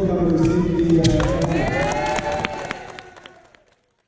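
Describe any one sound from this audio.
Hands clap sharply.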